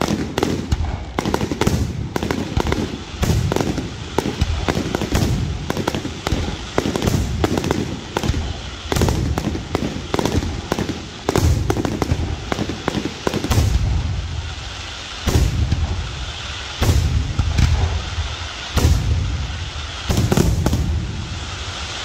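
Fireworks pop and bang in rapid bursts, echoing outdoors.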